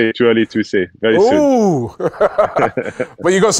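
A man talks and laughs heartily close by.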